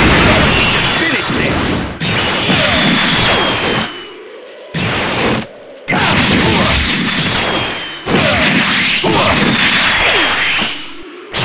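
Loud rushing whooshes sweep past as fighters fly through the air.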